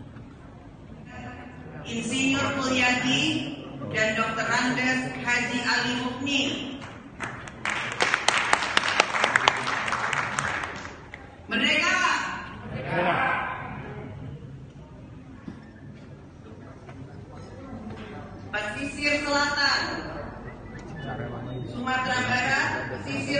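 A man speaks into a microphone through loudspeakers in a large echoing hall.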